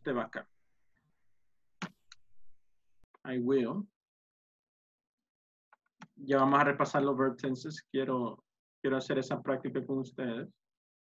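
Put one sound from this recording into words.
A man speaks calmly through an online call microphone, in short phrases with pauses.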